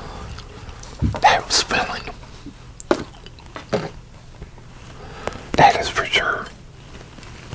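A middle-aged man speaks close to a microphone in short bursts.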